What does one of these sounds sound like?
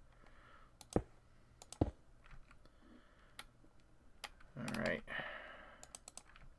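Short clicks sound as items are placed into wooden storage.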